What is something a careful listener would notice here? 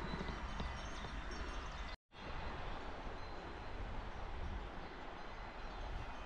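A river rushes steadily in the distance.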